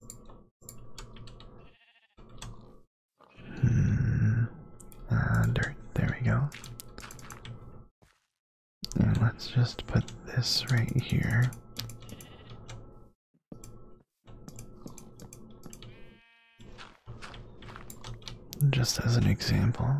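Blocks are placed with short soft clicks.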